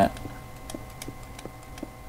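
A block breaks with a short crunch.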